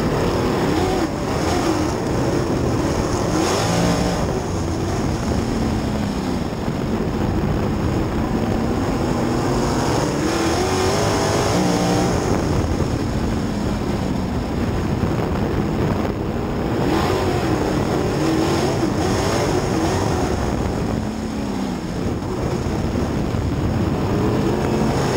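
A race car engine roars loudly close by, its pitch rising and falling as it revs through the turns.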